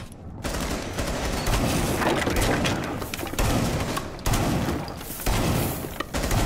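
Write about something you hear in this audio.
Wood splinters and cracks as bullets tear through a wall.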